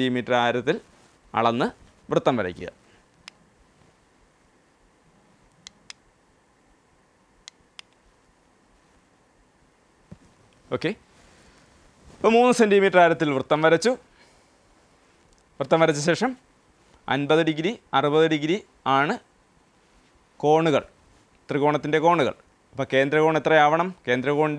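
A man speaks calmly into a close microphone, explaining in pauses.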